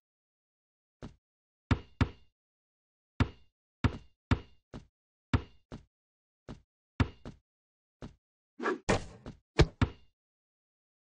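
A basketball bounces on a court in a steady rhythm.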